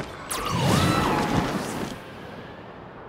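A loud whoosh of rising air bursts upward.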